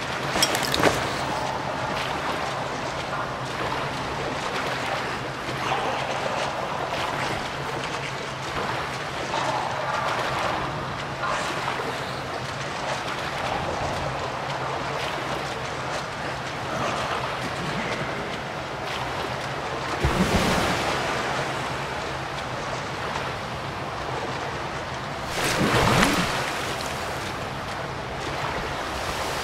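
Footsteps slosh through shallow water.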